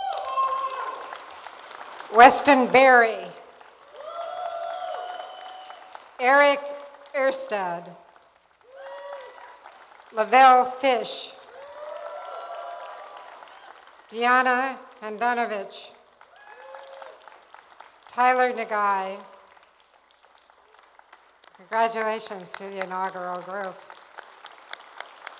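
An elderly woman speaks with animation into a microphone in a large echoing hall.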